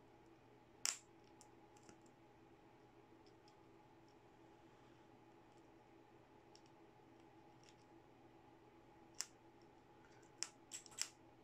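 Metal clips click and tap against a small circuit board.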